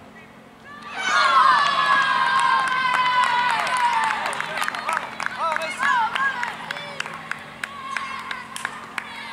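A group of young boys cheers and shouts loudly.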